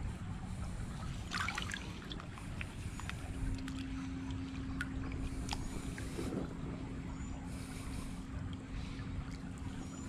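A gloved hand splashes and sloshes in shallow water.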